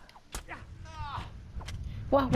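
Swords clash with a metallic ring.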